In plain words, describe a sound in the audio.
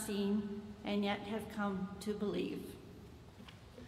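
A woman speaks calmly into a microphone in an echoing hall.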